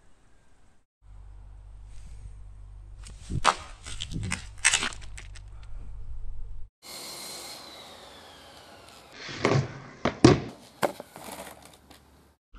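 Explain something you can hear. A skateboard's wheels roll and clatter on concrete.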